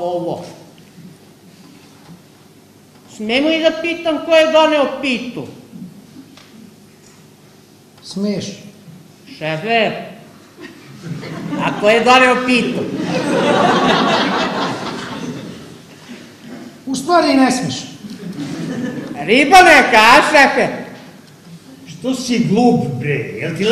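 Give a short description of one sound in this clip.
A man speaks loudly and expressively in a large hall.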